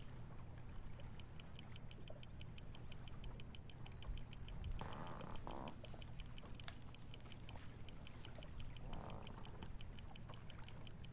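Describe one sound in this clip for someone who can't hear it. A fishing reel clicks rapidly as it is wound in.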